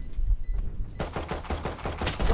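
A pistol fires several sharp shots in quick succession.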